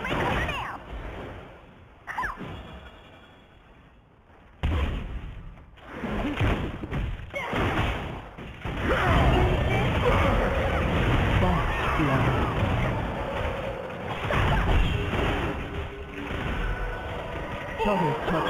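Magic blasts, zaps and hits clash in a fast fantasy battle.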